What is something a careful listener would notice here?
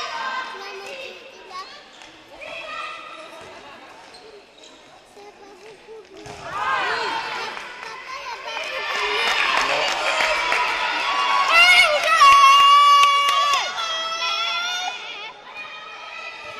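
Young women shout to each other across a large echoing hall.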